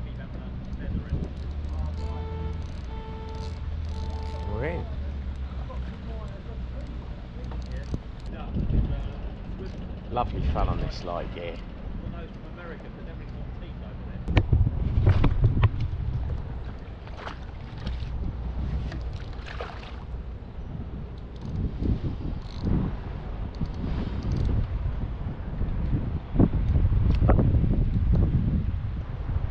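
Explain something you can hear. Water laps and splashes against a small boat's hull.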